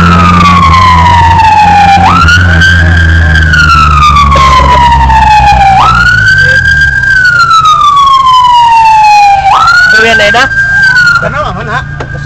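A siren wails loudly and close, rising and falling in repeated sweeps.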